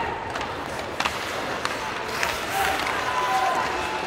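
A hockey stick slaps a puck with a sharp crack.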